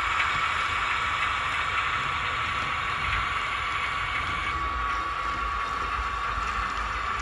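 A model locomotive's wheels roll along model track.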